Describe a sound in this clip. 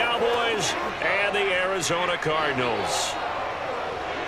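A stadium crowd cheers and roars loudly.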